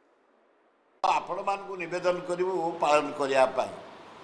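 A man speaks with animation into microphones, close by.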